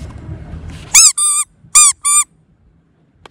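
A rubber toy squeaks sharply several times as it is squeezed.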